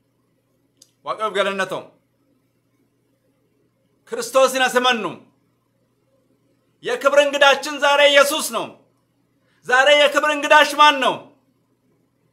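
A man speaks close by in short, clear phrases with long pauses between them.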